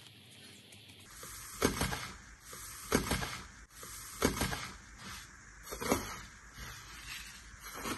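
Thin foil crinkles and rustles.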